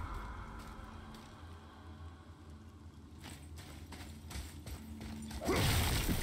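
Heavy footsteps crunch on stone and grit.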